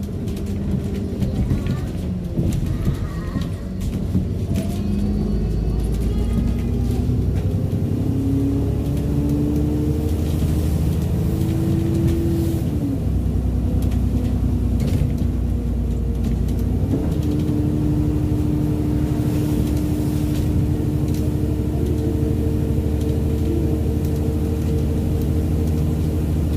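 A bus rattles and clatters over the road.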